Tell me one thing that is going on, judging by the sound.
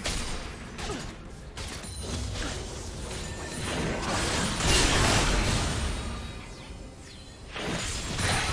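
Spell effects whoosh and crackle during a fight.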